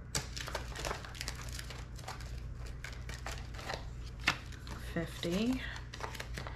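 Paper banknotes rustle and flick as they are handled.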